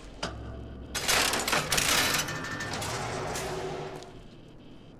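Machinery whirs and rumbles.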